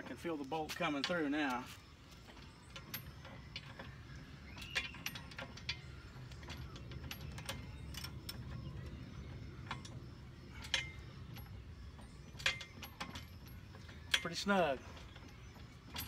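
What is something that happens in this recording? A ratchet handle clicks while turning.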